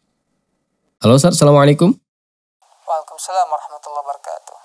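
A young man speaks calmly, close to a microphone.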